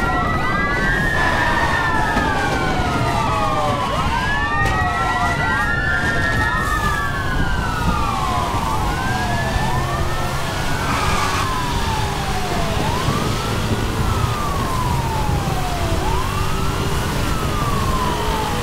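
Police sirens wail, rising and falling, close by.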